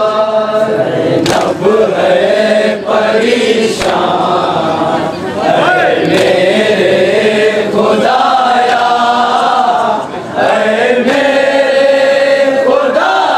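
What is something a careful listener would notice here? A group of men chant loudly together through a loudspeaker.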